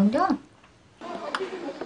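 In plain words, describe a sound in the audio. A young woman slurps noodles.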